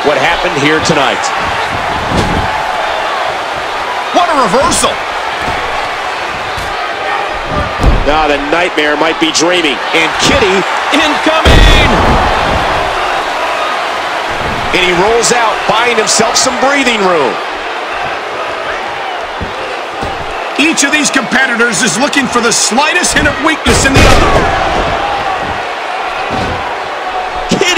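A crowd cheers and roars in a large echoing arena throughout.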